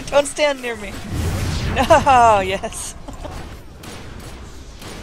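Fiery blasts burst with a whoosh.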